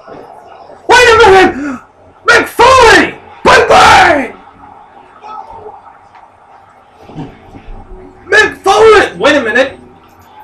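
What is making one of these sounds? A young man sings loudly and expressively close to a microphone.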